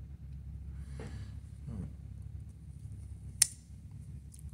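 A pocket knife blade snaps shut with a sharp click.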